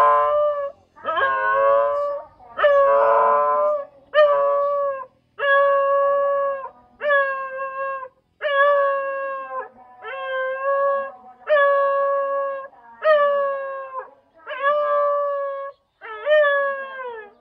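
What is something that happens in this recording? A large dog howls in long drawn-out notes.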